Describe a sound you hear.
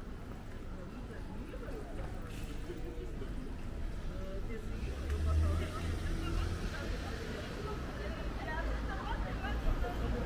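Street traffic rumbles steadily outdoors, swelling briefly as a vehicle passes.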